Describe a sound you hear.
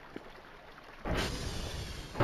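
A heavy metal door slides open with a loud rush.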